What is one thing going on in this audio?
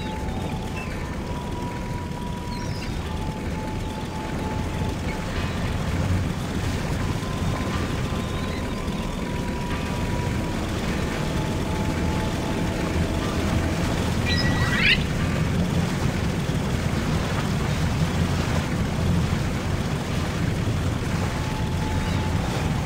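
Water splashes against a moving boat.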